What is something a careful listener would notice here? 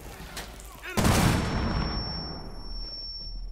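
A loud blast booms close by.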